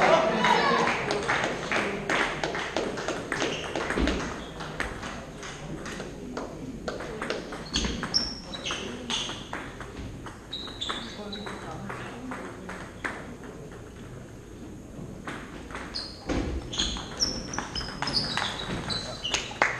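A table tennis ball clicks back and forth off a table and paddles in a large echoing hall.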